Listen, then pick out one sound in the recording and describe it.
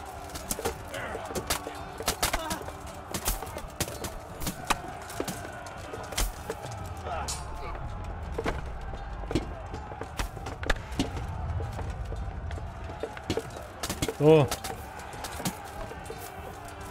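Swords clash and clang against armour in a fight.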